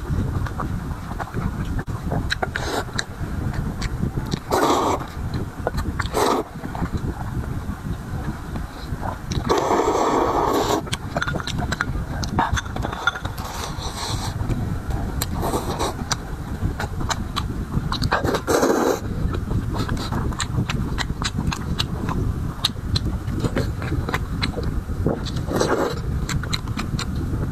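A man chews food with wet smacking sounds.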